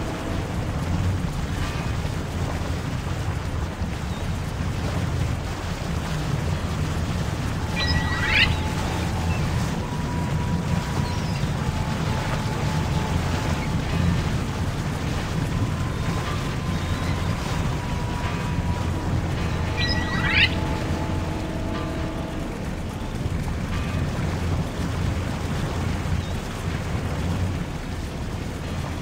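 A boat engine drones steadily over the water.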